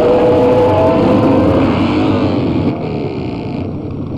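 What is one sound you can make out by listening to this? Several men shout and jeer together outdoors.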